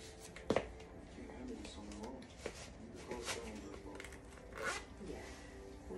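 A shoe is pulled onto a foot.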